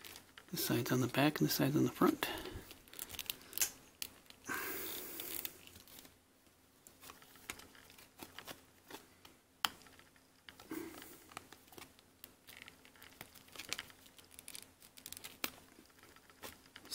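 Plastic parts click and scrape as a small toy is handled up close.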